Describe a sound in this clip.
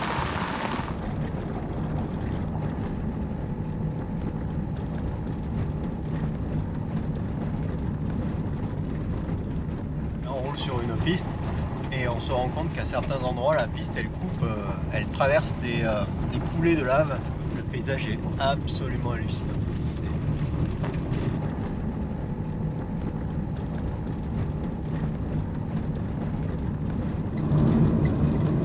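Tyres rumble on a gravel road.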